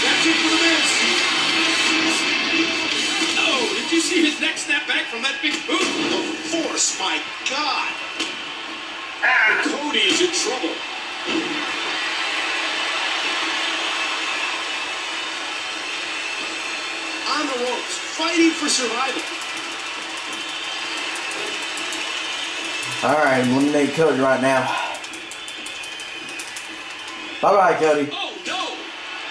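A crowd cheers and roars steadily through a television speaker.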